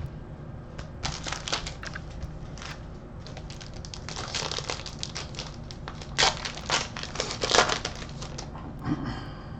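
Foil card packs crinkle and tear open.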